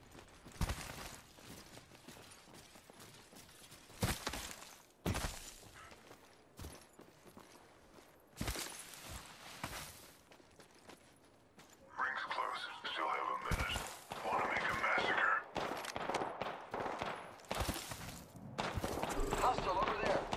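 Footsteps thud on grass and rock.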